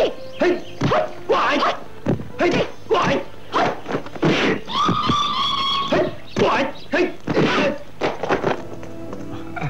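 Fists and feet strike in quick, sharp blows.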